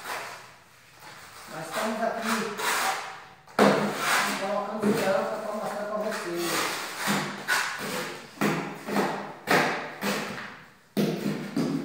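A hand taps a floor tile into place.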